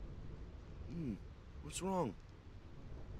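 A young man murmurs a puzzled question.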